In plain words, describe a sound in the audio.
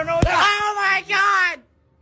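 A young man talks loudly close by.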